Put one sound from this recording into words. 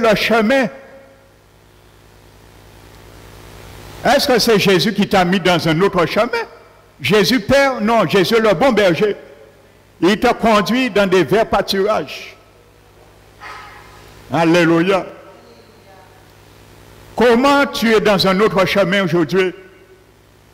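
An elderly man speaks with animation through a microphone, in short bursts with pauses.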